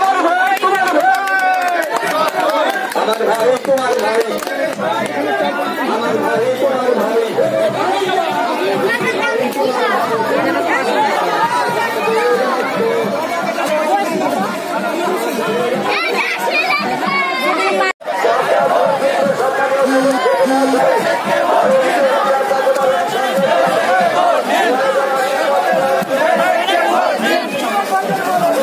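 A large crowd of men and women talk and shout loudly outdoors.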